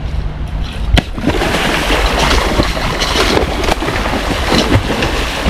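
A large catfish thrashes and splashes at the water's surface.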